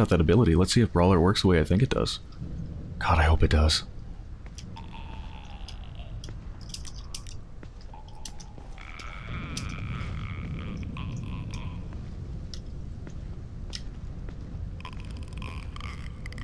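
Footsteps scuff softly on wet pavement.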